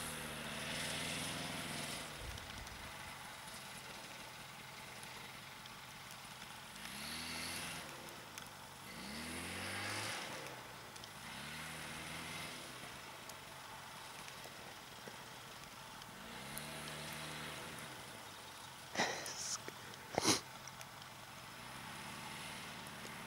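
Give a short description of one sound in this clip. A snowmobile engine revs up and down, close by outdoors.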